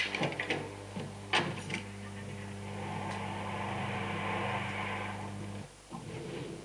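A car engine hums as a vehicle drives over a rough dirt track.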